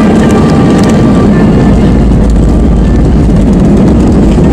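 Engines roar louder as the aircraft brakes.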